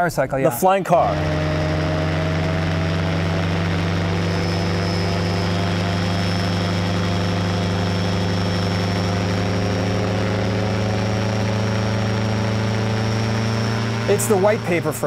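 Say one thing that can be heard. An engine drones steadily and loudly up close.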